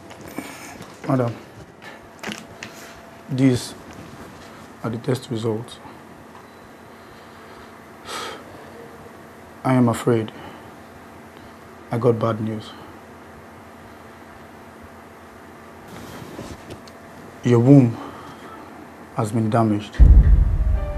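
A young man speaks calmly and quietly nearby.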